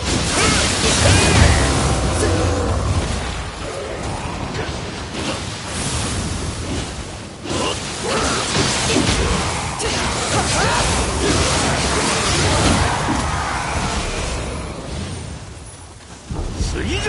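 Swords clash and slash with loud impacts and bursts of noise.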